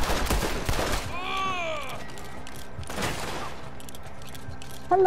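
A revolver clicks as it is reloaded.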